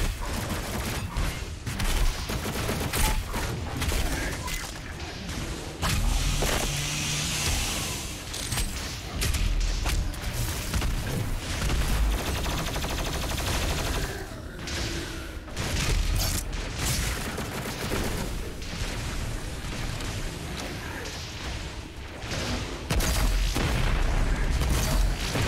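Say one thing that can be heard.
Loud gunshots blast in rapid bursts.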